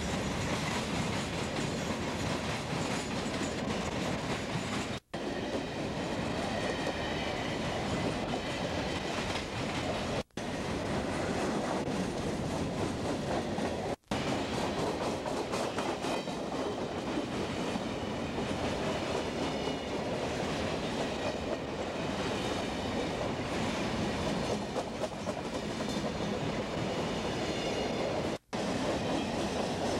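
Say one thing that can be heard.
A freight train rumbles past close by, wheels clattering loudly over the rails.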